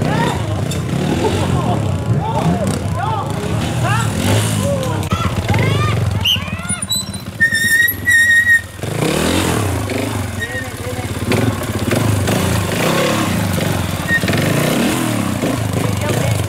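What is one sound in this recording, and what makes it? A motorcycle engine revs up and down in short bursts.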